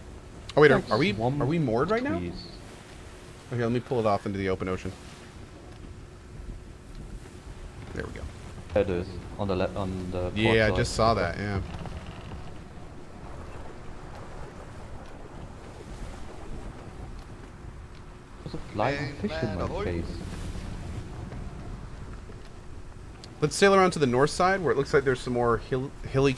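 A man talks casually into a close microphone, in bursts with pauses.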